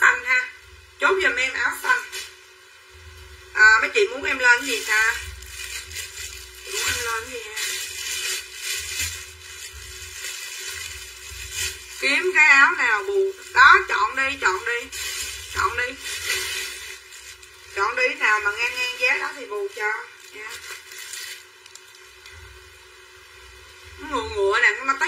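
A middle-aged woman talks with animation close to a microphone.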